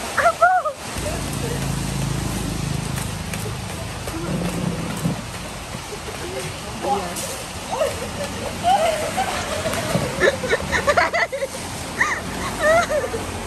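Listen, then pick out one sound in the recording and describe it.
Young men shout and laugh playfully outdoors.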